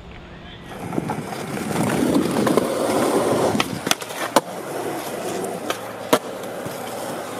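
Skateboard wheels roll and rumble on smooth concrete.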